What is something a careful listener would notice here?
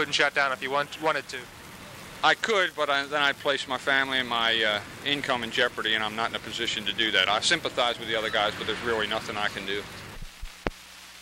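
A man speaks calmly into a microphone up close.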